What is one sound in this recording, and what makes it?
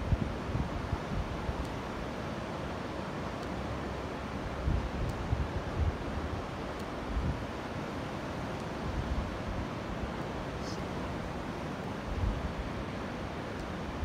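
Sea waves wash and break steadily nearby, outdoors in a light wind.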